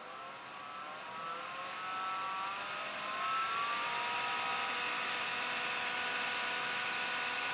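A computer fan whirs and speeds up to a higher, louder hum.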